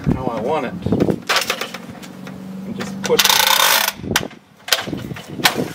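A metal ladder clanks and creaks as a man steps onto it.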